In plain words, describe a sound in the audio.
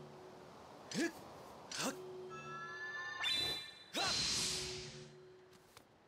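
A sword swishes and rings as it is swung.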